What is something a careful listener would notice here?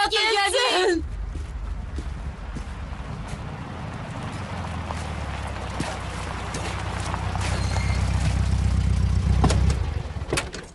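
A car engine rumbles as a car drives up slowly.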